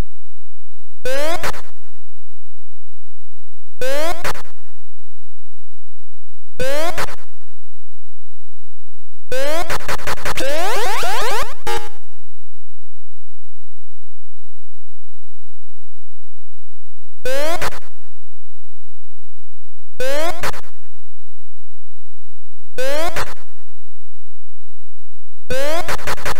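A short rising electronic chirp sounds again and again.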